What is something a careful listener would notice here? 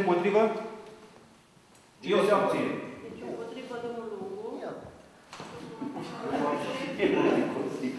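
A middle-aged man speaks with animation in a slightly echoing room.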